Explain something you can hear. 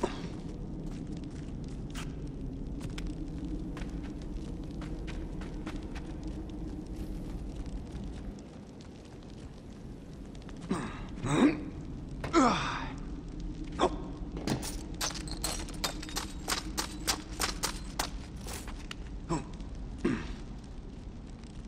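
Footsteps scuff and tap on stone.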